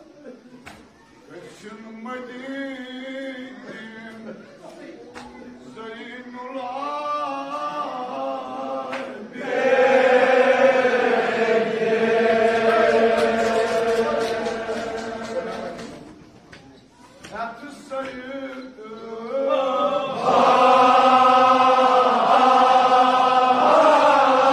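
A crowd of men chants loudly in unison in a large echoing hall.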